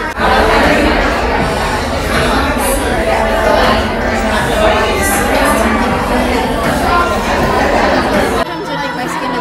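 A crowd of people chatter and murmur all around.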